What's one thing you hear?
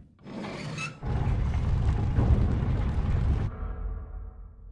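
A heavy door rumbles open.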